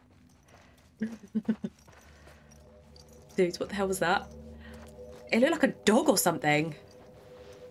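A young woman speaks close to a microphone, in short bursts.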